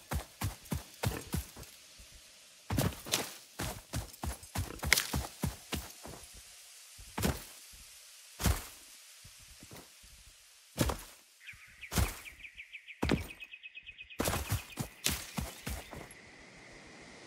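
Footsteps thud and rustle through grass at a steady walking pace.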